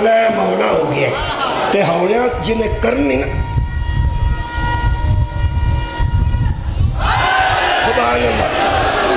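A middle-aged man speaks with passion into a microphone through loudspeakers.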